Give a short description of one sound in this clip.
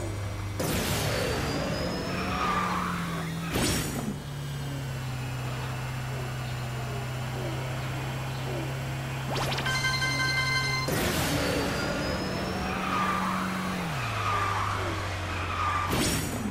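A kart engine hums steadily at high speed.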